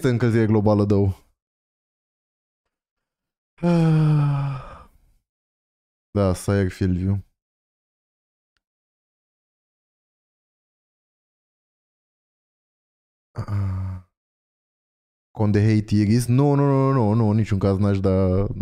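A young man speaks casually and close into a microphone, in short bursts with silent pauses.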